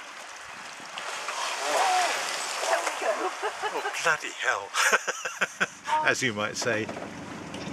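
An elephant splashes heavily through water close by.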